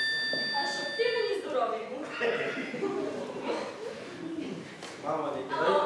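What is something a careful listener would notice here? A woman speaks through a microphone in a hall.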